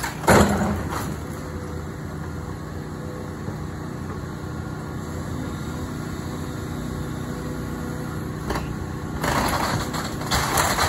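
Wooden debris cracks and crashes as a building is torn down.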